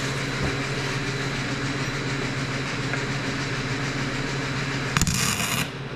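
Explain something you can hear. An arc welder buzzes and crackles steadily close by.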